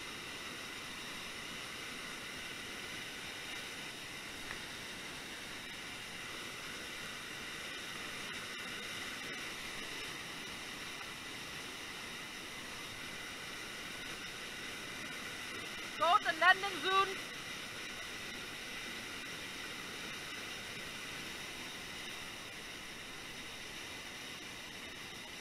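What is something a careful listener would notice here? A waterfall roars steadily close by.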